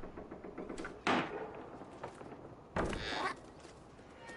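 A cat lands with a soft thump after a jump.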